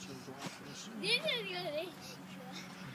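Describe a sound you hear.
A young girl squeals excitedly close by.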